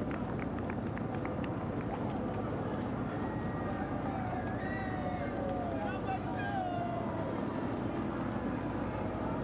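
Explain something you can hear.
A large crowd cheers and whistles in the distance.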